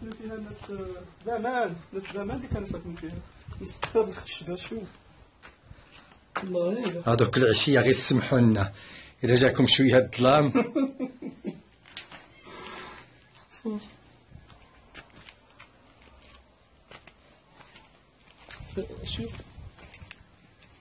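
A middle-aged man talks calmly and close by, pausing now and then.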